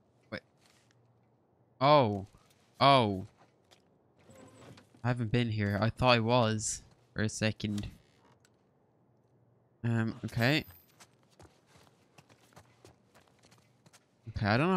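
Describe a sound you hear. Footsteps tread softly across a wooden floor.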